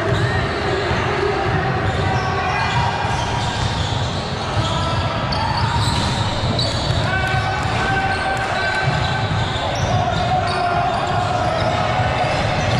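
A crowd of spectators chatters in a large echoing hall.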